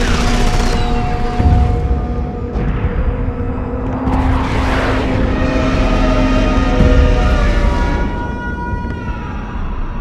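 Loud sirens wail and blare.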